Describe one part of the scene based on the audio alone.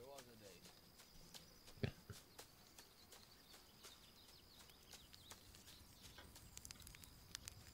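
Footsteps rustle through grass.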